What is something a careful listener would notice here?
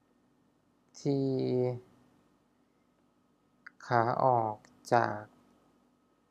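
A young man speaks calmly into a nearby microphone.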